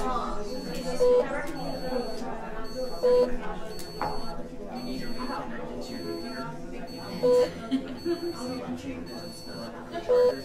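A ticket machine beeps as passengers board.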